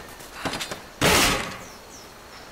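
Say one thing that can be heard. A wooden chest lid creaks open with a thump.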